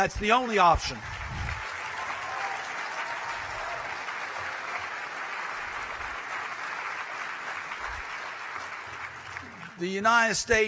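A large audience applauds steadily.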